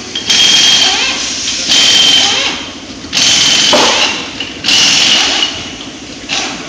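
An impact wrench whirs loudly in short bursts.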